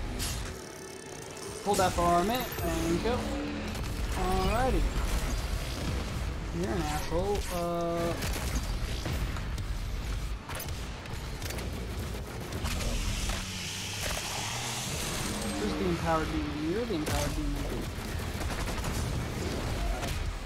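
A monster is torn apart with wet, squelching crunches.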